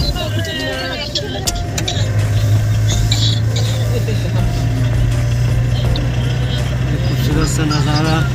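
A car engine hums steadily while driving on a smooth road.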